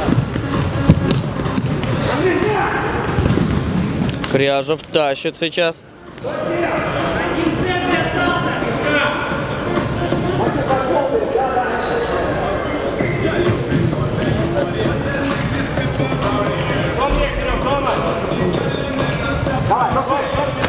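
Players' shoes squeak on a hard court.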